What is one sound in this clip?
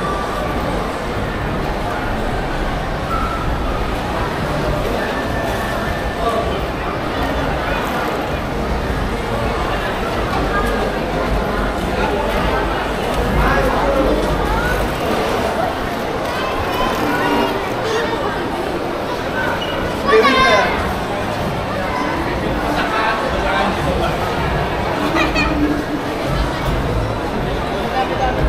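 Many people's voices murmur throughout a large, echoing indoor hall.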